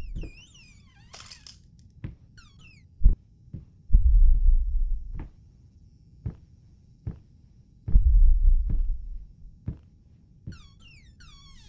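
Slow footsteps thud on a creaky wooden floor.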